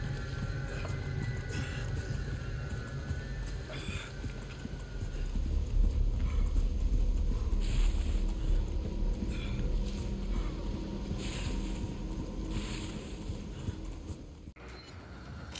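Footsteps run over dry leaves and dirt outdoors.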